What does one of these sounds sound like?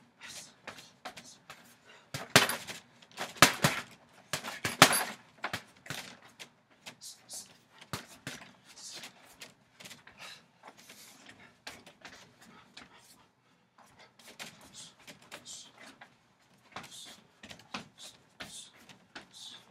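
Gloved punches thud against a heavy punching bag.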